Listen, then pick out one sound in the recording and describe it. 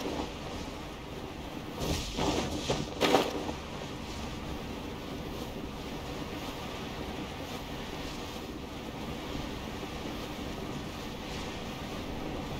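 Wind rushes steadily past a gliding figure.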